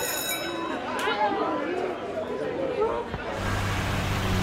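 Many young people chatter in an echoing hallway.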